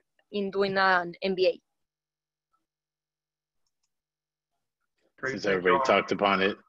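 A woman speaks calmly over an online call, pausing between phrases.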